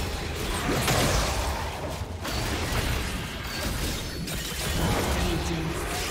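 Magic spell effects whoosh and crackle in quick bursts.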